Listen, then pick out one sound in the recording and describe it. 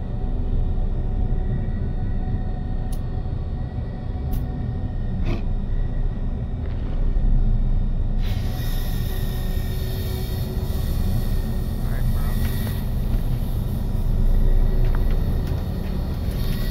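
A low, steady electronic hum drones throughout.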